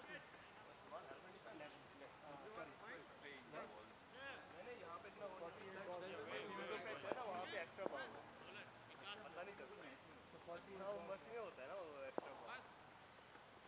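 Several men talk and call out outdoors.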